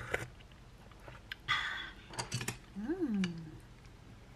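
Chopsticks and a spoon clink against a pot.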